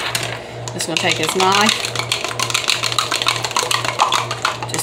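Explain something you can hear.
A fork whisks an egg briskly in a plastic cup.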